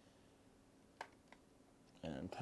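A small part clicks softly into a slot.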